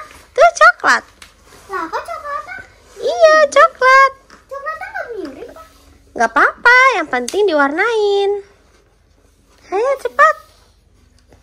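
A young girl talks excitedly up close.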